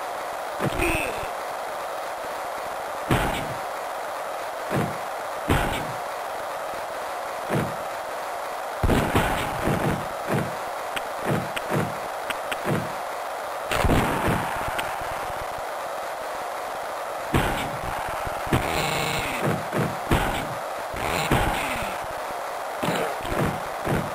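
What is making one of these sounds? A crowd roars steadily throughout.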